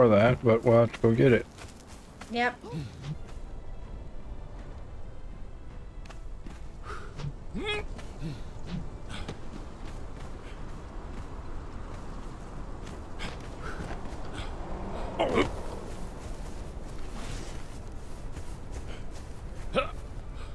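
Footsteps crunch over grass and gravel.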